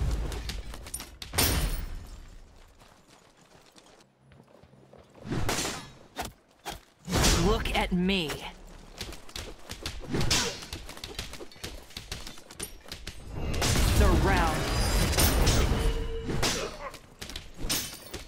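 Magic spell effects whoosh and crackle in loud bursts.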